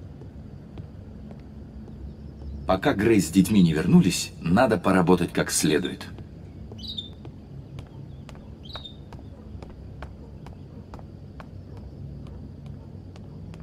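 A man's footsteps tread on a wooden floor.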